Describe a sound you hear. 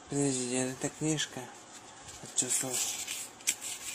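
Paper pages rustle as they are flipped by hand.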